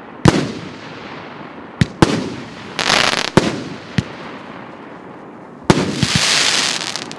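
Fireworks bang loudly in the sky.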